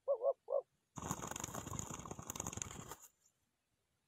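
Wings flap and flutter as a dove lands.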